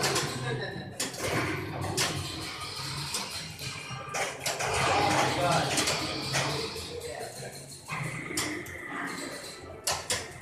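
Pinball flippers clack sharply as buttons are pressed.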